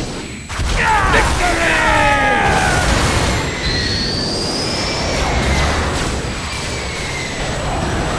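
A video game jet engine roars.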